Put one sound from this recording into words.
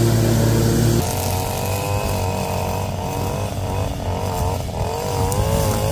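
A string trimmer whines and revs nearby.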